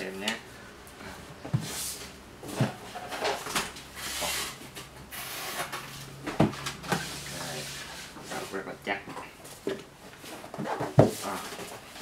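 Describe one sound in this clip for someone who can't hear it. A cardboard box knocks and scrapes on a wooden table.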